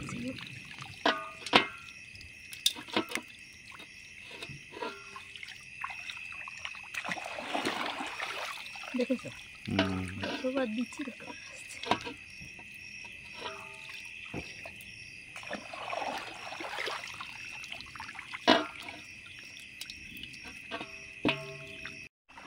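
A net frame knocks against a plastic basin.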